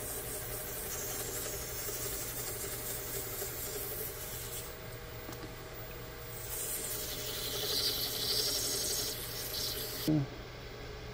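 Sandpaper hisses against a spinning piece of wood.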